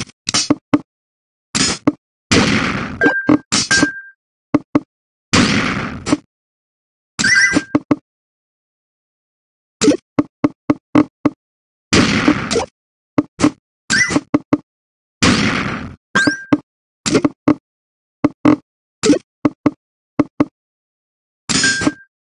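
Game sound effects click as falling blocks lock into place.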